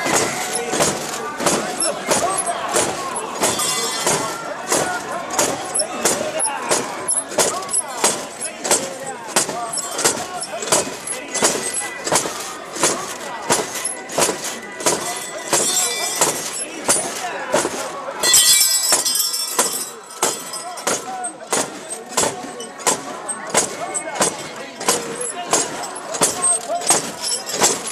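A crowd of men chant loudly in rhythm close by.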